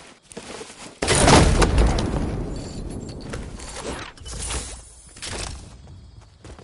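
A supply crate bursts open with a loud rush.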